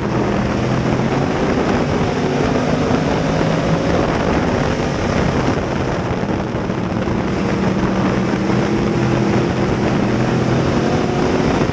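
A race car engine roars loudly up close, its pitch rising and falling.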